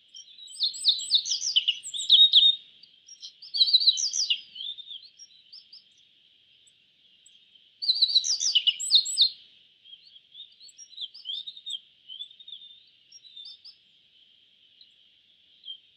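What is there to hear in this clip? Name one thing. A small songbird sings bursts of quick, high chirping trills, close by.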